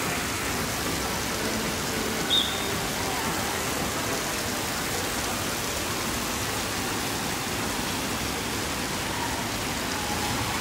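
Outdoors, a breeze blows steadily.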